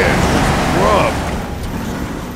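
Sparks crackle and burst briefly.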